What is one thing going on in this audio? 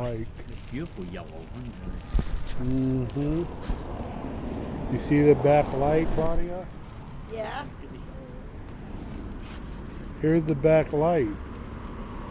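An elderly woman speaks close by.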